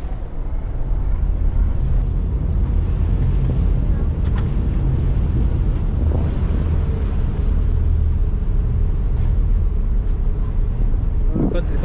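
A ferry engine rumbles steadily.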